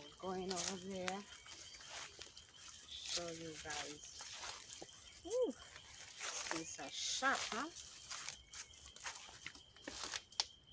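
Footsteps rustle through grass and dry leaves.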